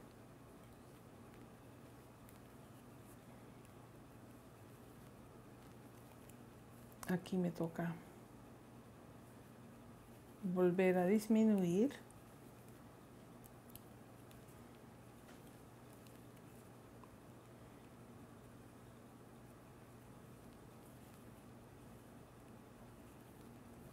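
Wooden knitting needles tap and click softly.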